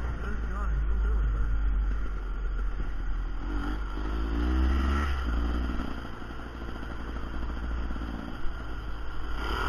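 A dirt bike engine hums and revs up and down close by.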